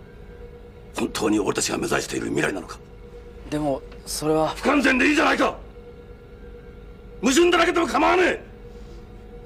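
A middle-aged man speaks firmly and seriously, close by.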